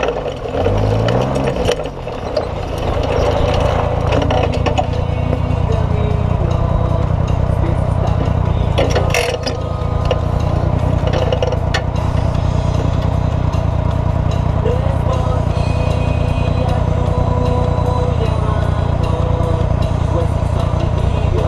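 A buggy engine idles with a steady low rumble.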